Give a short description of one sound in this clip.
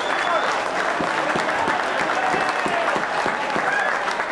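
A football thuds off a boot.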